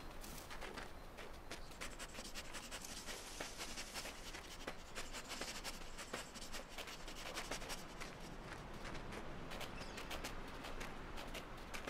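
A small animal's paws patter and crunch quickly through snow.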